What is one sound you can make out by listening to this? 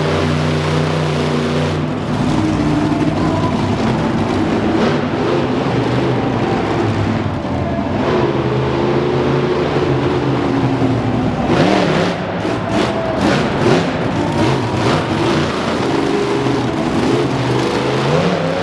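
A monster truck engine roars and revs loudly in a large echoing arena.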